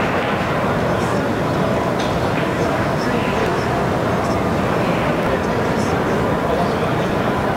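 A man talks on a phone nearby.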